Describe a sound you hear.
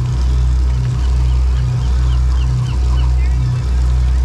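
Seagulls call overhead in short, sharp cries.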